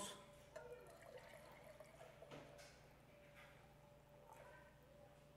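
Thick juice pours from a jar into a glass.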